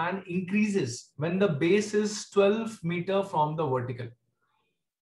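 A man talks calmly and clearly into a microphone.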